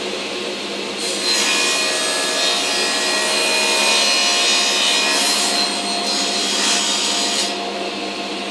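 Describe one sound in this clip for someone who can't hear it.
A saw blade cuts through wood with a harsh, rising whine.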